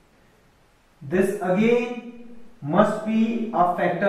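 A young man speaks calmly, explaining, close by.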